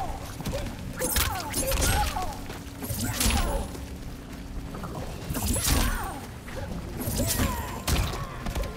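Heavy blows land with loud thuds and cracks.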